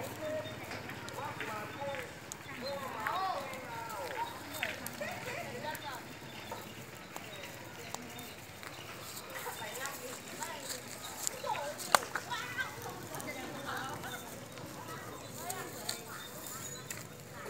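Fire crackles and pops.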